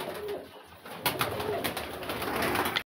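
A pigeon's wings flap as it takes off.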